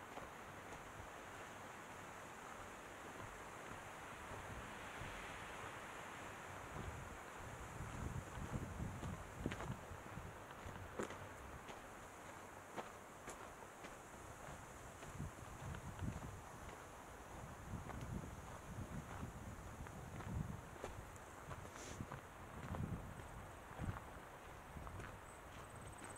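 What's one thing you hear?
Footsteps crunch on a dirt trail.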